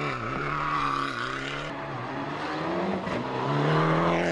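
Tyres spin and spray gravel on a dirt road.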